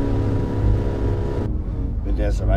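A boat engine drones at speed.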